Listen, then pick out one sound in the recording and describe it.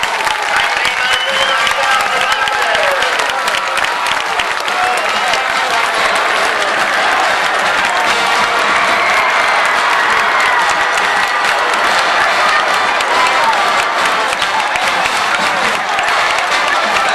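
A crowd of teenage boys shouts and cheers outdoors.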